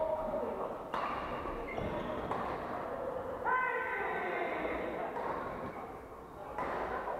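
Rackets smack shuttlecocks in a large echoing hall.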